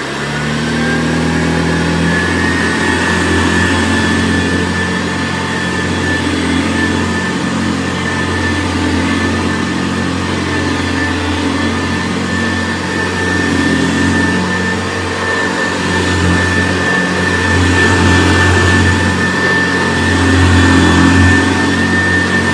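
A vintage upright vacuum cleaner is pushed back and forth over carpet.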